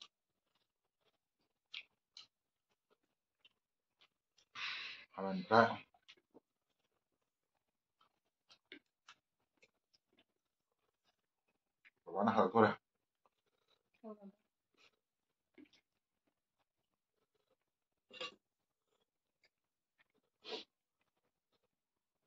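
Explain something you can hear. A man chews and smacks food close up.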